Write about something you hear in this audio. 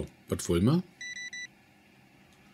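A card reader beeps several times in quick succession.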